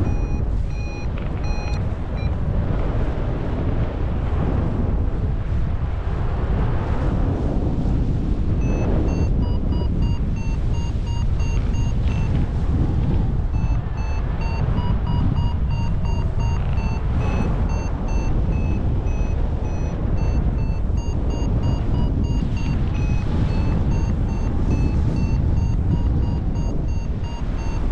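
Strong wind rushes and buffets loudly past the microphone.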